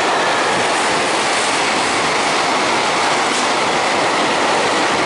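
Train wheels rattle rhythmically over the rail joints.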